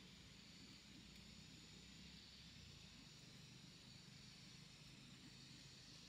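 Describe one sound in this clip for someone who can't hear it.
Hands rustle and scrape through dry leaves and soil.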